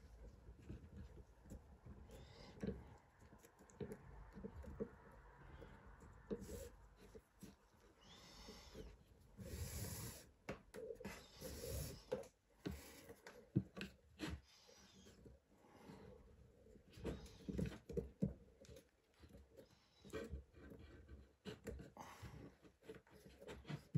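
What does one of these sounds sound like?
Cord rustles and slides against a plastic buckle.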